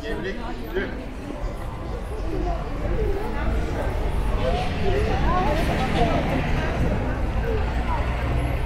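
Several people talk nearby in a busy street crowd.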